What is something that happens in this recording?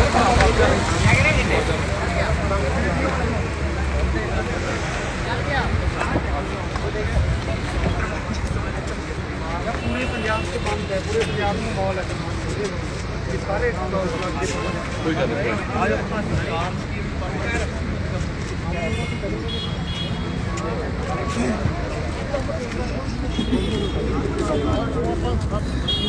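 A large crowd of men shouts and talks over each other close by, outdoors.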